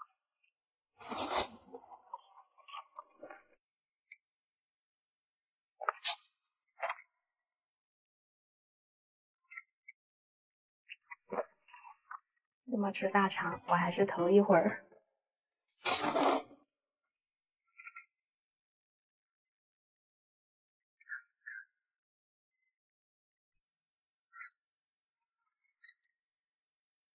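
A young woman slurps noodles loudly, close up.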